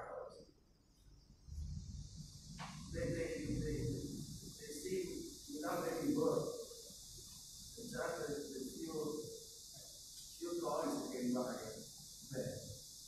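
A man speaks calmly over loudspeakers in a large echoing hall.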